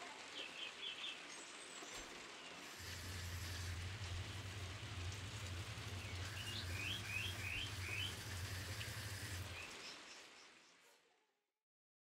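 Water hisses from a spraying hose.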